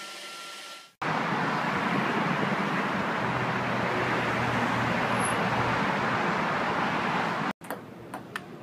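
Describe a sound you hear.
Freeway traffic roars steadily below.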